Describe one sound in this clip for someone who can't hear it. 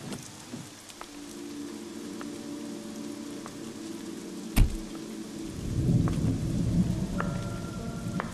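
Heavy rain pours down outdoors.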